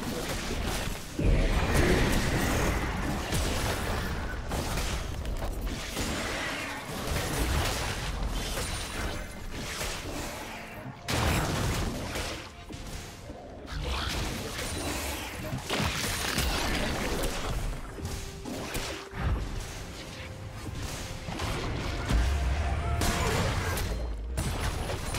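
Fantasy battle sound effects clash and burst with magic blasts and hits.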